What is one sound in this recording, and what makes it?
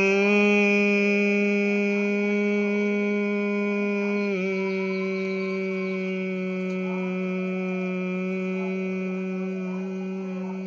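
A man hums a long, steady low note close by.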